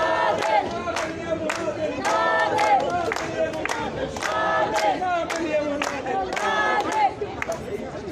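A crowd claps in a steady rhythm outdoors.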